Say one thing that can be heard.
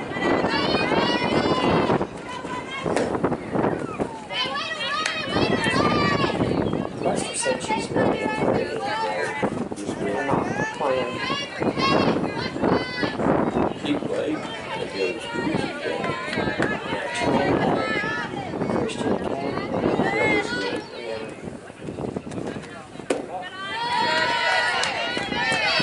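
Young women shout and cheer nearby outdoors.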